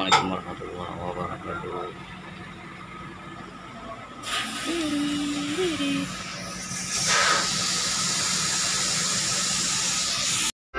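A large truck engine idles steadily nearby.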